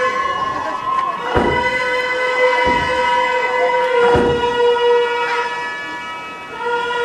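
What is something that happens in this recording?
A reed pipe plays a long, steady, wavering melody.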